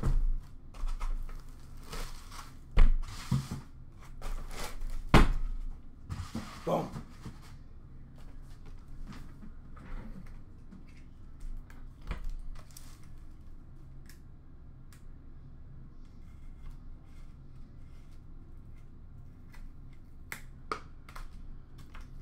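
Cardboard rustles and taps as a box is handled.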